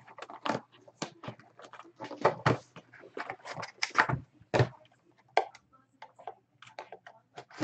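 Card packs rustle and tap against each other as they are handled.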